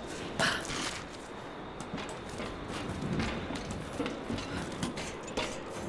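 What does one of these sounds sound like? Hands and feet clank on a metal ladder.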